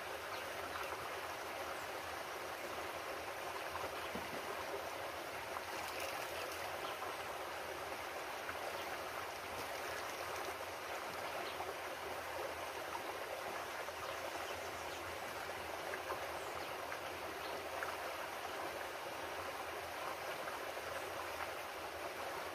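Water splashes softly as a bottle is dipped into a stream.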